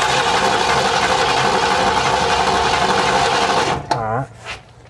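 A car engine runs loudly.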